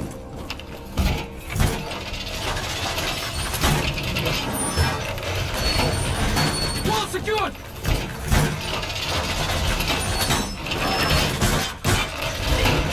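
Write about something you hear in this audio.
Metal wall panels clank and slam as they are fixed in place.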